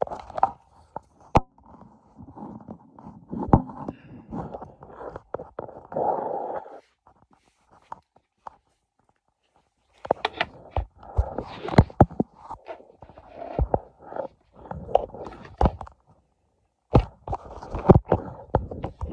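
Knocks and bumps of a phone being handled close by.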